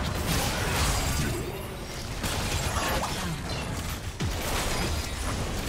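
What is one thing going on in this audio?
Magic spells crackle and blast in a fast fight.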